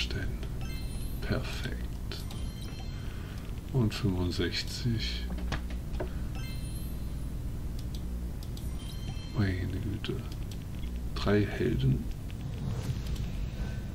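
Bright game chimes and jingles ring out as rewards pop up.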